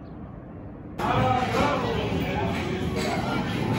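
Arcade machines jingle and chime loudly indoors.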